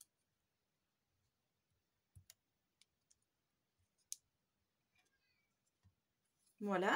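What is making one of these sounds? Paper rustles softly as a card is pressed and smoothed down.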